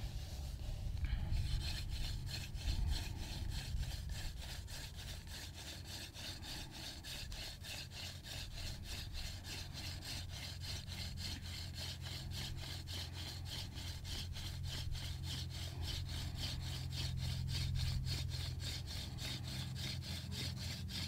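A wooden spindle whirls and rubs quickly against a board.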